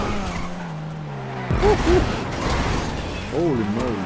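A car crashes and scrapes against a barrier.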